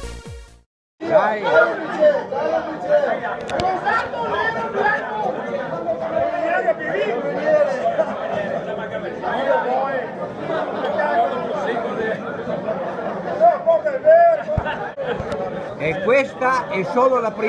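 A crowd of men and women chat and laugh together in a busy room.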